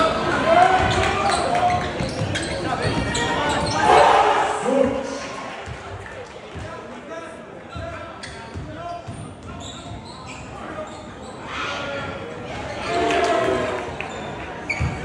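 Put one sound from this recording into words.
A crowd in a large echoing gym cheers and shouts loudly.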